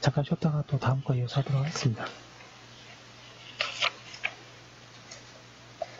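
Paper rustles and crinkles as a page is handled close by.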